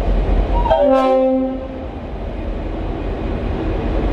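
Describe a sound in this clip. A diesel locomotive engine drones close by as it passes.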